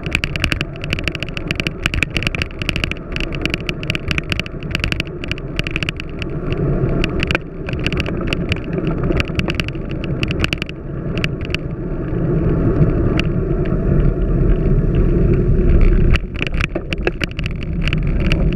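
Wind buffets a microphone on a moving bicycle.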